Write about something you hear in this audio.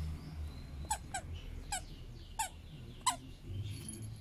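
A squeaky toy squeaks sharply several times as a dog bites it.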